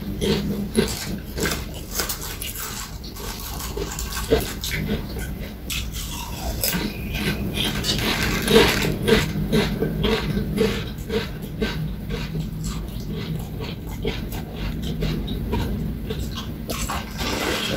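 Crisp snacks crunch loudly as a man chews close by.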